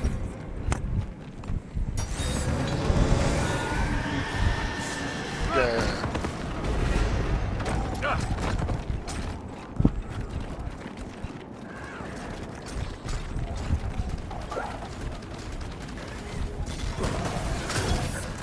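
Heavy armoured footsteps crunch and thud on snow.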